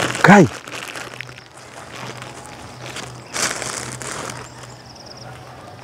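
A man walks slowly on grass and dirt.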